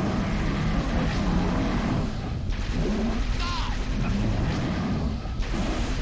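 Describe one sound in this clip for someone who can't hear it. A blade crackles and slashes in a close fight.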